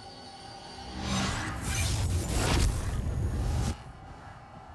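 Blows thud in a fast scuffle.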